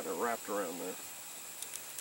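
A man speaks briefly nearby.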